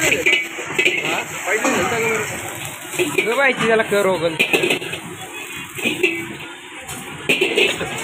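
Food sizzles and crackles in a hot wok.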